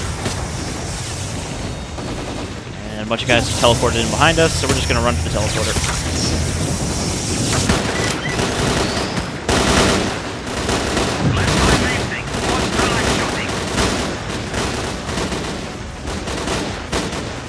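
An electric anomaly hums and crackles.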